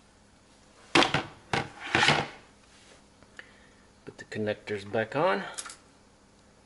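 Plastic fittings click and rustle as hands handle them close by.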